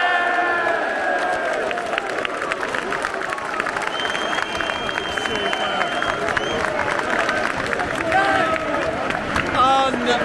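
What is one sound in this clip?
A crowd claps hands.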